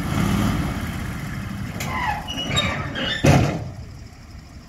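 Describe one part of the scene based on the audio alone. A truck engine rumbles and idles nearby.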